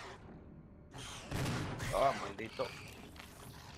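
A monster snarls and roars loudly.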